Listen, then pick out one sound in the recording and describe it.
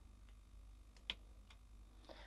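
A small plastic pot clicks as it is set down on a table.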